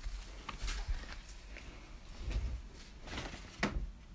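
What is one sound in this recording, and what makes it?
Cloth rustles as laundry is handled in a plastic basket.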